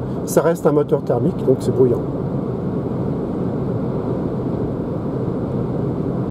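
A car's tyres and motor hum steadily on the road, heard from inside.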